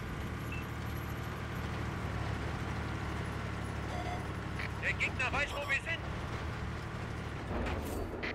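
Tank tracks clatter over the ground.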